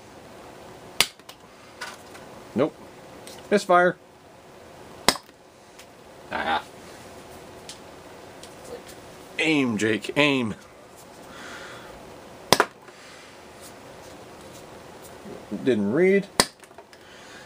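A toy launcher snaps sharply as it fires a foam dart.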